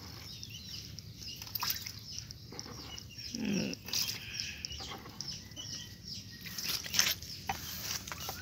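Water sloshes as a scoop swishes through a tub.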